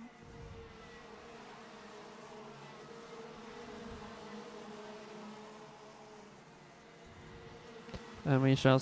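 Go-kart engines buzz in the distance as karts race past, then one roars up close.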